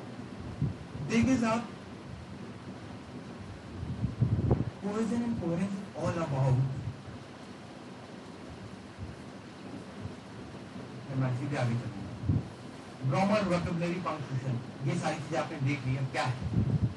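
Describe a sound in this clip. A man speaks to an audience in a room with some echo, heard through a microphone.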